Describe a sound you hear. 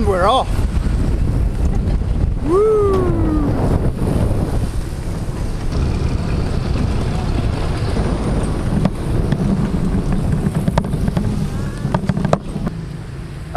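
Wind rumbles against the microphone while riding.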